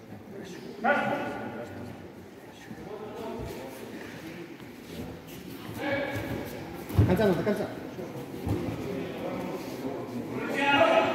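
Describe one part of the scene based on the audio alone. A man shouts loudly in a large echoing hall.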